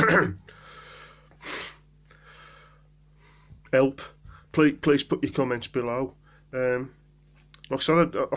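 A man speaks calmly and close to a phone microphone, with pauses.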